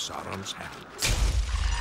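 A heavy blade whooshes through the air.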